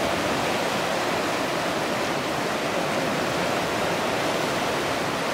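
A river rushes loudly over rocks nearby.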